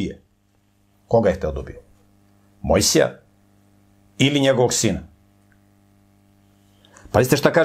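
A middle-aged man speaks calmly into a close microphone, in short phrases with pauses.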